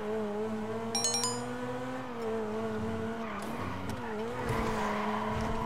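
A sports car engine hums steadily and shifts in pitch as the car drives.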